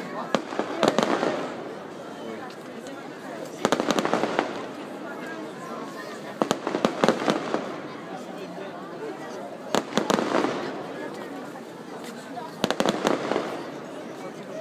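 Fireworks burst overhead in sharp, crackling bangs every few seconds.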